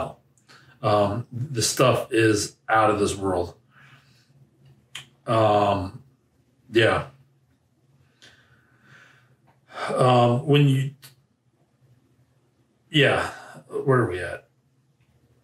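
A man speaks calmly and close by in short bursts.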